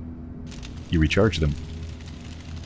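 An electric charger crackles and buzzes with a short zap.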